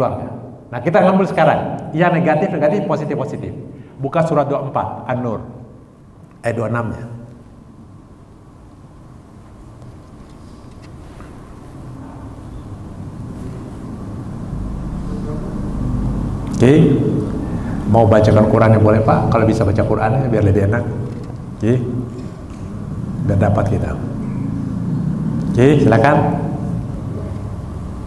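A man speaks with animation into a microphone, with pauses, in a reverberant hall.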